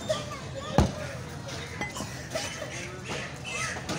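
A cleaver thuds onto a wooden chopping block.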